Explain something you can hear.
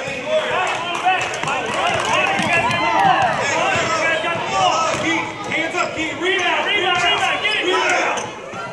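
Young children shout and chatter excitedly, echoing in a large hall.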